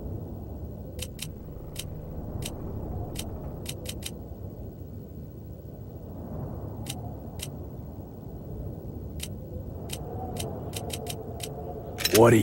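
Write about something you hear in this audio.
Short, sharp menu clicks tick as a selection moves between options.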